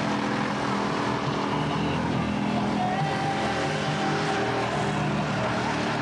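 Spinning tyres screech on the track.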